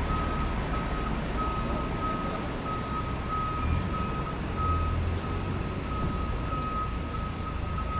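Sand and gravel pour and patter into a plastic toy truck bed.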